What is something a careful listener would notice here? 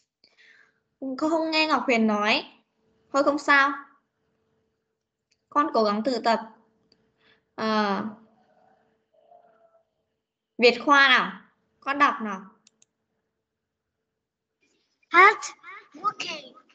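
A man speaks in short, clear phrases over an online call.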